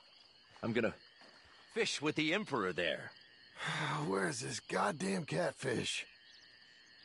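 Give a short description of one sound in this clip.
A man talks gruffly to himself nearby.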